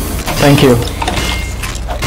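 A wrench clangs against metal.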